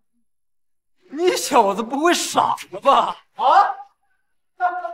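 A young man speaks forcefully, close by.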